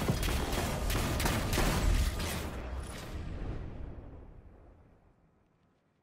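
Rapid gunfire rattles and fades away.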